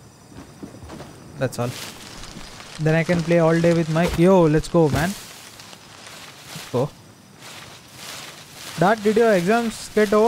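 Footsteps rustle through tall dry crops.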